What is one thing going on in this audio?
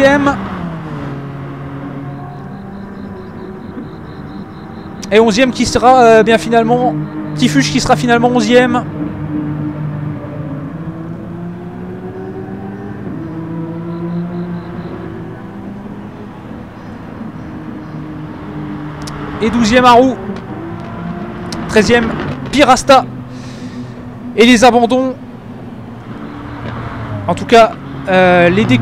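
A racing car engine drones and changes pitch as it speeds up and slows down.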